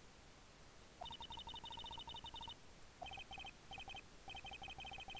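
Short high electronic blips chirp as game dialogue text scrolls in.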